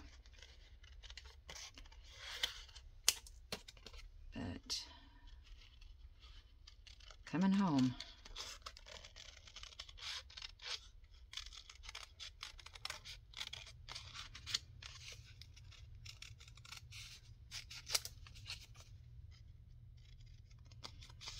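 Paper rustles as hands handle a card.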